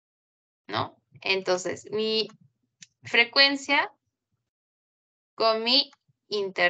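A young woman speaks calmly and clearly through a microphone, as if explaining.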